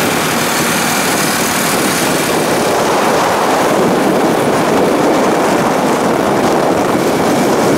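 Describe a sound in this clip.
A motor scooter's engine hums nearby.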